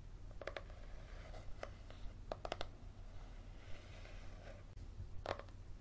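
Fingernails scratch across the cover of a paperback book.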